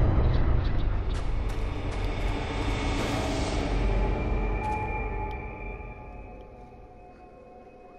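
Footsteps crunch slowly over rough ground.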